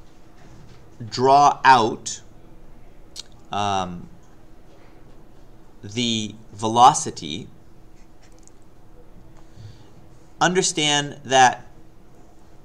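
A man speaks calmly into a microphone, explaining in short phrases with pauses.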